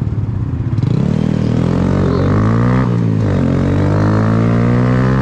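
A motorcycle engine revs loudly up close, rising and falling in pitch.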